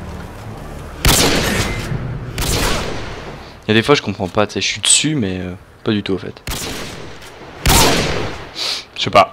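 Sniper rifle shots crack loudly.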